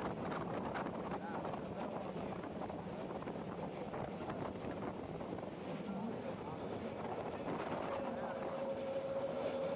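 A train rumbles along its track, heard from inside a carriage.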